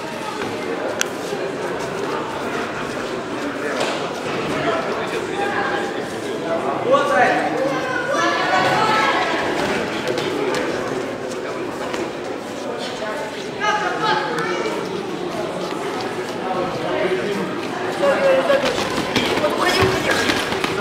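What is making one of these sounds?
Boxing gloves thud against each other and on bodies.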